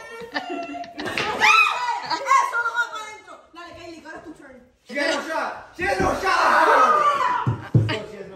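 Teenagers shout and cheer excitedly close by.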